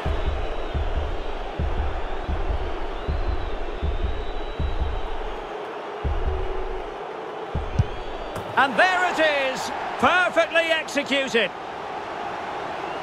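A stadium crowd murmurs and roars steadily.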